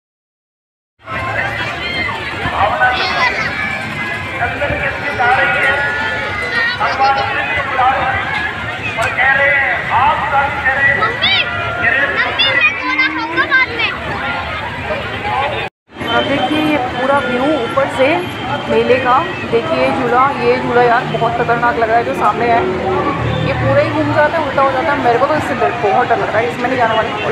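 A crowd of children and adults chatters and shouts outdoors.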